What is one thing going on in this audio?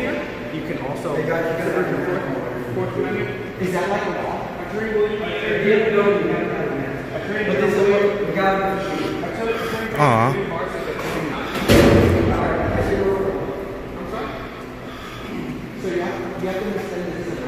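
Several men talk and argue with animation close by.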